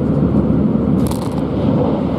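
A passing train rushes by with a brief whoosh.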